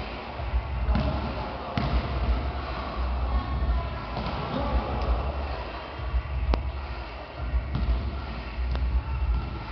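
A ball thuds on a wooden floor and echoes around a large hall.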